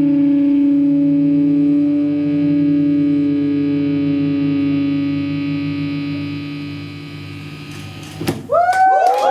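An electric guitar chord rings out loudly and slowly fades.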